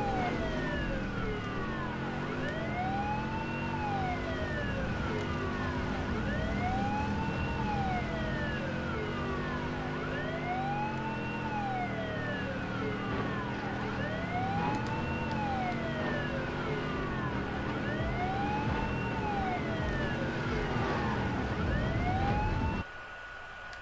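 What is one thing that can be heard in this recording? A car engine roars and revs.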